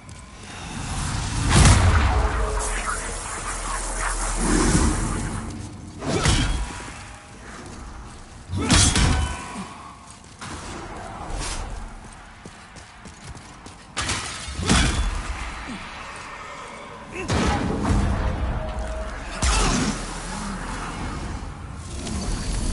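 Energy beams whoosh and hiss past.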